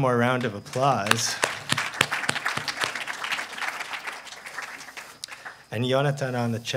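A man claps his hands rapidly.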